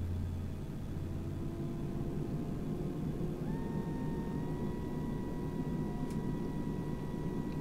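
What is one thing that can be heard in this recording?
Jet engines rumble steadily as an airliner taxis.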